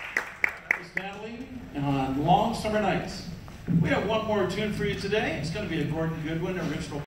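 A man speaks into a microphone over a loudspeaker in a large hall.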